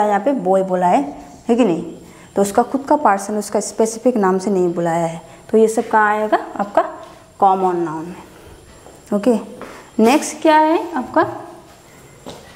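A young woman speaks calmly close to a microphone, explaining.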